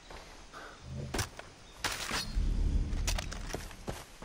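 Leafy plants rustle as they are pushed aside.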